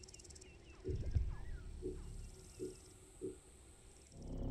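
Short game menu clicks sound in quick succession.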